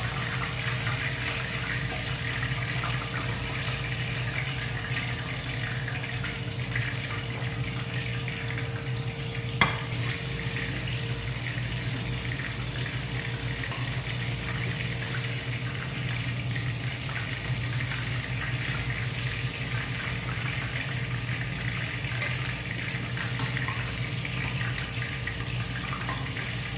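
Tongs clink against a metal pan.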